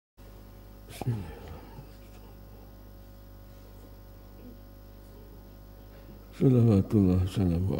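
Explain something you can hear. A man speaks into a microphone, heard through loudspeakers in an echoing room.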